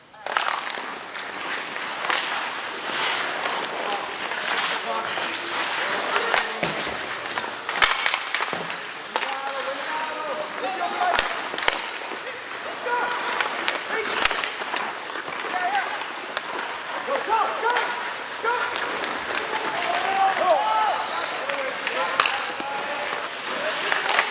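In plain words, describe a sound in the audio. Skates scrape and hiss across the ice throughout.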